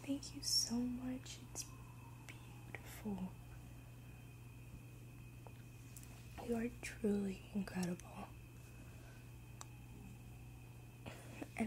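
A young woman speaks softly, close to the microphone.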